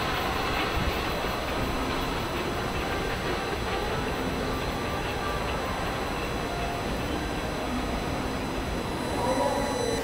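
A heavy train rumbles slowly away along the tracks.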